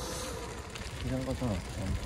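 A bicycle brake squeals briefly as the bike slows.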